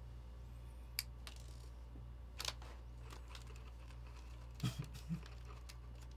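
Small plastic pieces click and snap.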